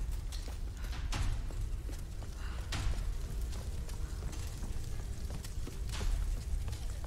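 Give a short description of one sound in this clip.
Footsteps thud on wooden steps.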